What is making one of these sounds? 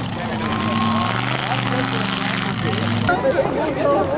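A truck engine roars and revs nearby.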